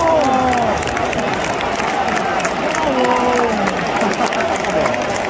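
A large stadium crowd sings loudly together, echoing around the stands.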